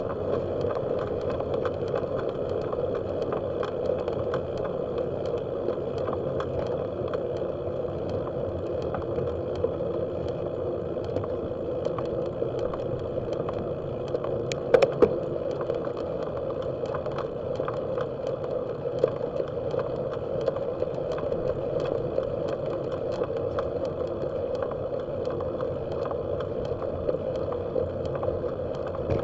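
Tyres hum steadily on a paved road.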